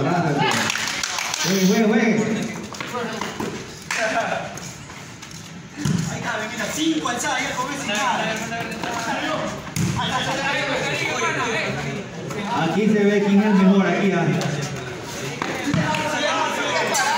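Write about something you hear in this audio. Men shout and call out to each other outdoors during a game.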